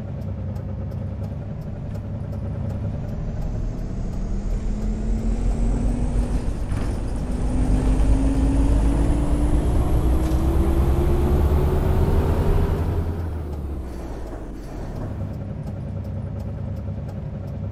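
A bus engine hums and rises in pitch as the bus speeds up, then drops away.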